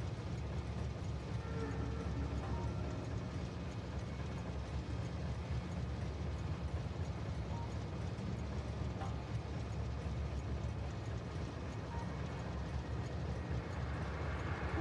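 Many machines hum steadily.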